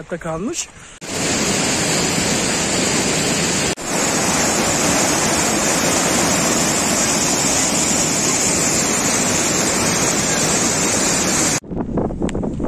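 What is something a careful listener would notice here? A fast mountain stream rushes loudly over rocks.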